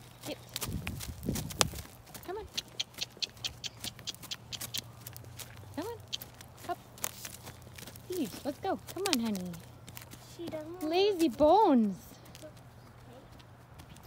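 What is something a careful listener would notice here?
Horse hooves thud on soft dirt at a walk.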